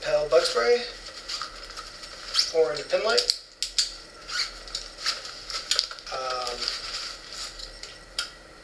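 A nylon backpack rustles and crinkles as things are packed into it.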